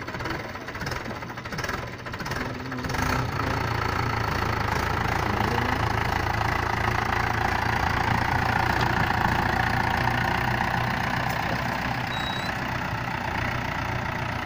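A tractor engine rumbles steadily and strains as the tractor pulls out of the mud.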